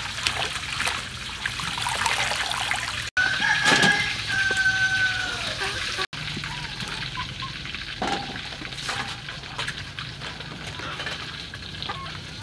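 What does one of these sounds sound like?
Water splashes and sloshes as vegetables are washed by hand in a basin.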